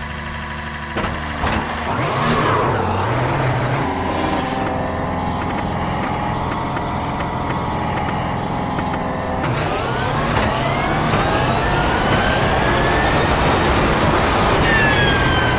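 A racing car engine revs up and roars as it accelerates through the gears.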